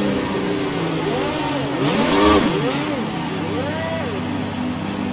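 Other racing car engines rev and whine past nearby.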